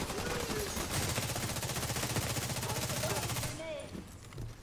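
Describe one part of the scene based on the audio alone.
Rapid gunfire rattles up close.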